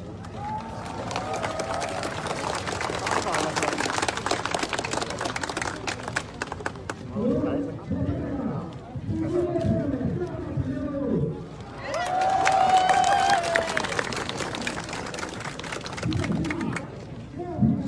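A crowd clamours and shouts loudly outdoors.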